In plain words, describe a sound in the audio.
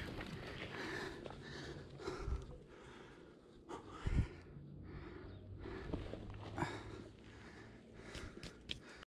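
Shoes shuffle and scrape on dry dirt nearby.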